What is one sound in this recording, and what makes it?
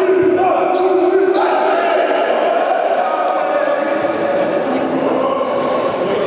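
An older man calls out loudly to a team.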